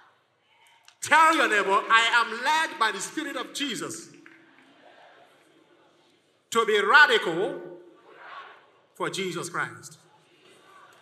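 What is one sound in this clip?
A man shouts with animation into a microphone, heard through loudspeakers in an echoing hall.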